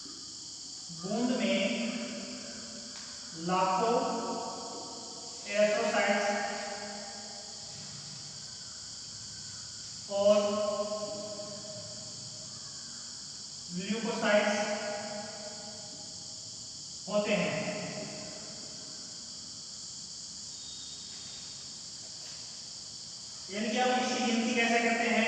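A man speaks calmly in short bursts, as if lecturing nearby.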